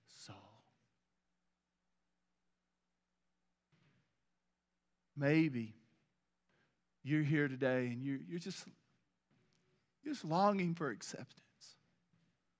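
A middle-aged man speaks with emphasis into a microphone, with pauses between phrases.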